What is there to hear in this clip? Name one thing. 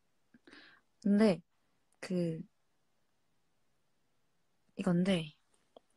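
A young woman speaks softly in short phrases close to the microphone.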